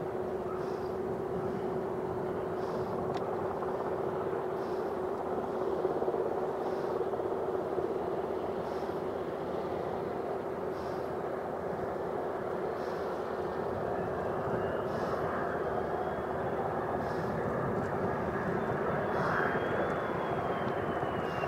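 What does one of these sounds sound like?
A jet engine roars steadily as a fighter plane approaches.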